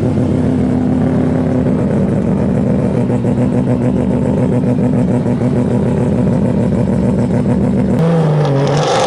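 A car engine idles with a steady, deep rumble.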